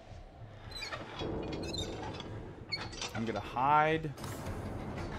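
A heavy metal valve wheel turns with a rising, grinding squeal.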